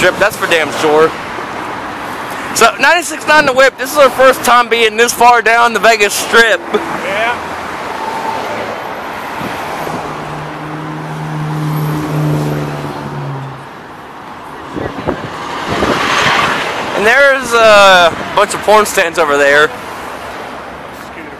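Traffic hums steadily along a wide street outdoors.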